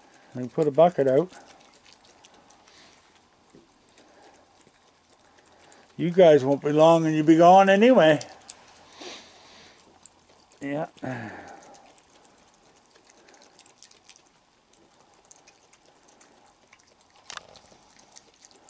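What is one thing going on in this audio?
A raccoon chews food with soft, wet smacking sounds.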